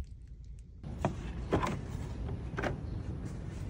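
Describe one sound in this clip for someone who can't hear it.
A plastic cover clicks and knocks as it is lifted off.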